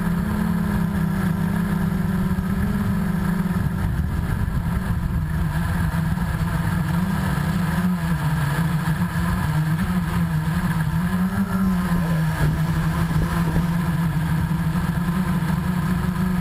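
A drone's propellers buzz steadily close by, the pitch wavering up and down.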